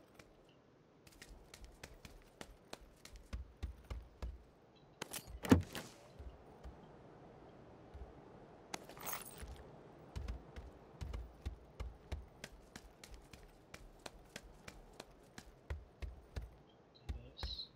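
Footsteps thud on wooden floors and stairs.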